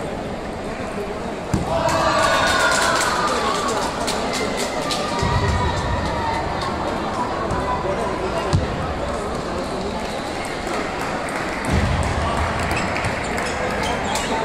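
Ping-pong balls click sharply against paddles and tables in a large echoing hall.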